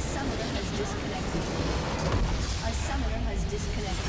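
A crystal structure explodes with a deep boom in a game.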